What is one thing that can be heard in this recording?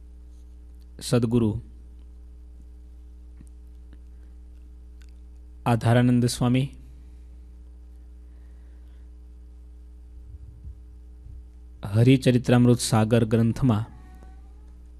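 A man speaks slowly and calmly into a microphone, in short bursts with long pauses.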